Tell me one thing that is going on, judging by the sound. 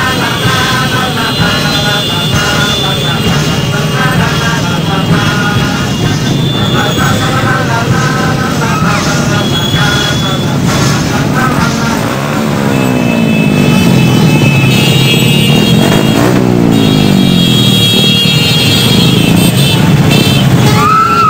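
Many motorbike engines rumble and putter close by.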